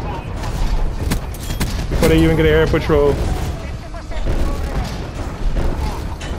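Missiles whoosh down and explode.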